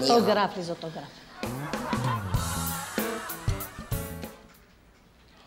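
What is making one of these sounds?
A second middle-aged woman talks with animation, close by.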